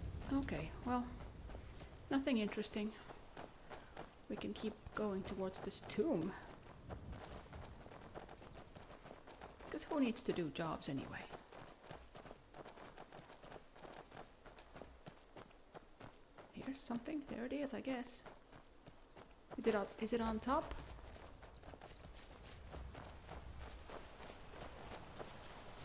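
Footsteps rustle through grass and undergrowth.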